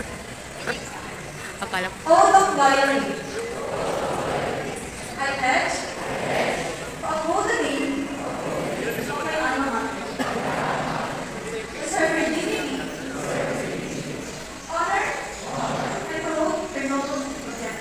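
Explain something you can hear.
A crowd of young people recites together in unison, echoing in a large hall.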